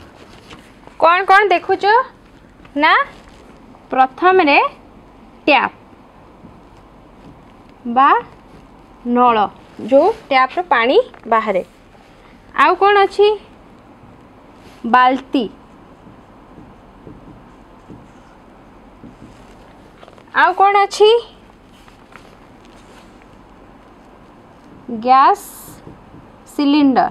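A young woman speaks clearly and calmly close by, in short phrases with pauses.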